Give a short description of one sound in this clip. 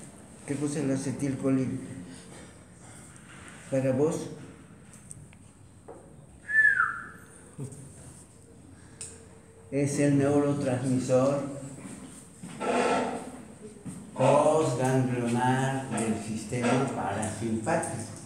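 An elderly man speaks calmly and close by, explaining.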